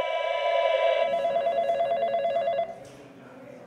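A telephone rings loudly with a trilling tone.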